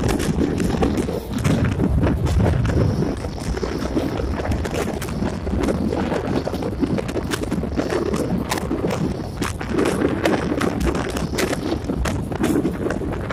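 A passenger train rolls along, its wheels rumbling and clattering over rail joints.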